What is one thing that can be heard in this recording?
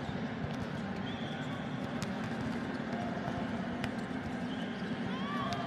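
Sneakers squeak on the court floor.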